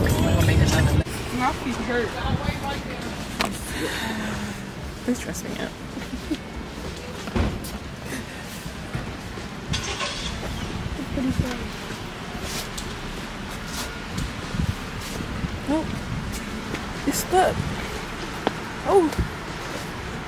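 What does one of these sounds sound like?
Footsteps tap on paving outdoors.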